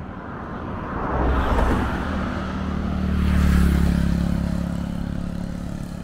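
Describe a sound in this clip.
A car passes by on the road with a rushing whoosh.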